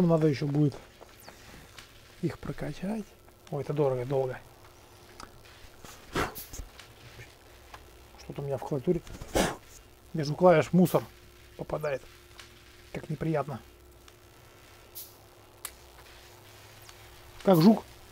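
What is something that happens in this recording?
A young man talks casually into a close microphone, in short bursts.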